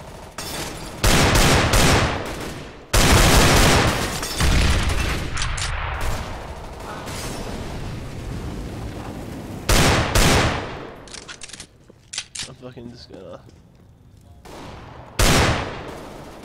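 Loud pistol shots fire in bursts.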